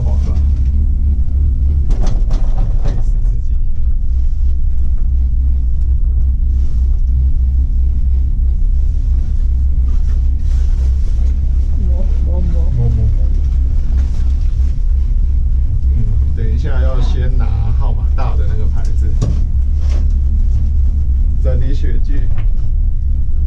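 A cable car cabin hums and rumbles steadily as it rides along.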